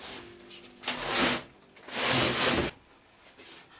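A large wooden sheet scrapes as it slides across a wooden surface.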